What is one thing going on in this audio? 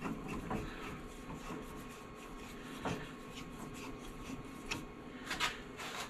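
Metal parts click and clank as a lathe chuck is tightened by hand.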